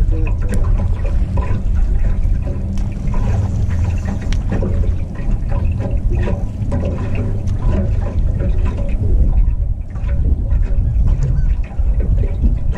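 Wind rumbles loudly across a microphone outdoors.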